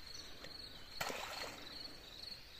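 A keepnet splashes into water.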